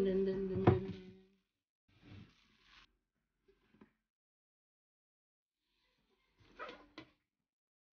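Fingers rub and tap across a tin lid.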